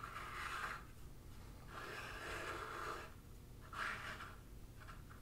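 A small plastic figure slides and scrapes softly across a tabletop.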